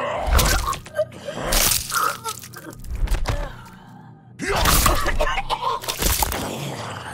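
Blades slash into flesh with wet, squelching hits.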